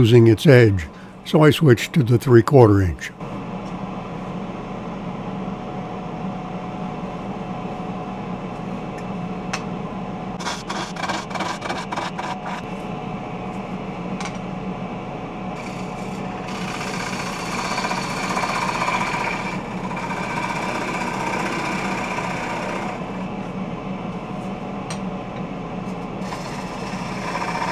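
A wood lathe hums as it spins a bowl blank.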